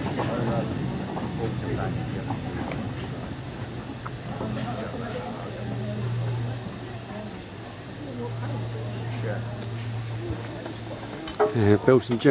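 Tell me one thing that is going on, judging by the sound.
A small steam locomotive hums steadily.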